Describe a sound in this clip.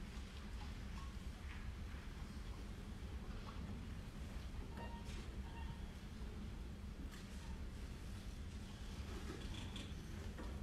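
Violins play along with the piano.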